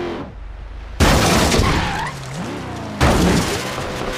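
A truck crashes and tumbles with heavy thuds.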